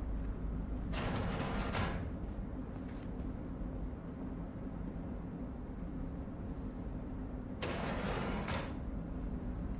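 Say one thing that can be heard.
Soft electronic menu sounds swish as panels open and close.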